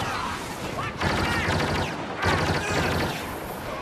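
Laser blasters fire in quick bursts.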